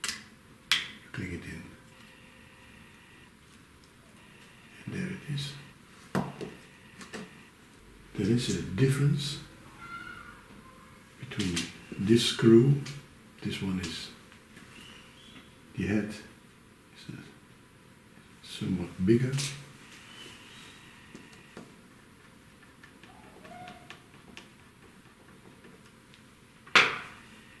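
Small plastic and metal parts click and tap as a device is handled.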